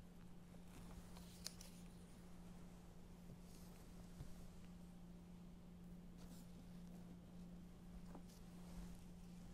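Pages of a book rustle as they turn.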